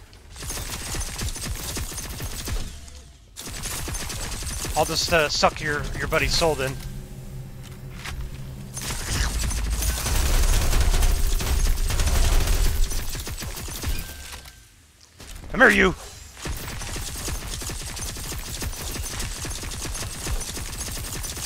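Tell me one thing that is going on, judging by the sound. Energy beams zap as a weapon fires.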